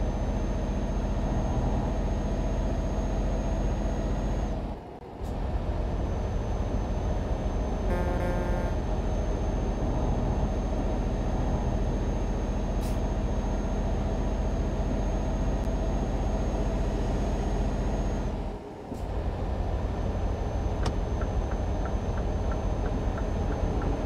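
A truck engine drones steadily at speed, briefly dropping away twice as gears change.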